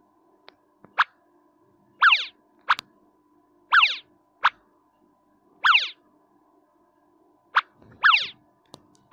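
Short swooshing game sound effects play again and again.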